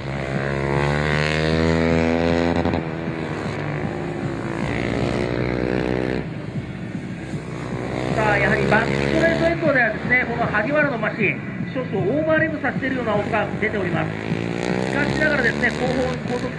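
A motorcycle engine roars and revs as the bike speeds past.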